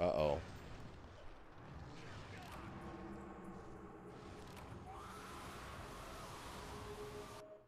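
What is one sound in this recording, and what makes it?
A young man shouts in surprise into a close microphone.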